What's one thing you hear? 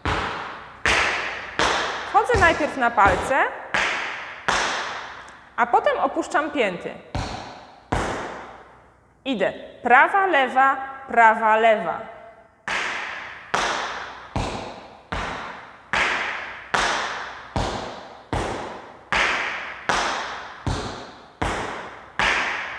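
Tap shoes tap in a steady rhythm on a wooden floor.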